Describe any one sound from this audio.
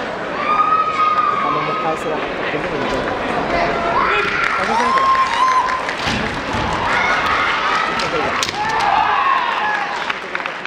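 Masked fencers shout long, piercing battle cries in a large echoing hall.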